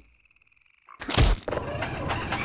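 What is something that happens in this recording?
A heavy thud of a fall lands on a hard surface.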